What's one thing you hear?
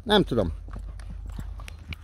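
A horse walks close by, its hooves thudding on soft sand.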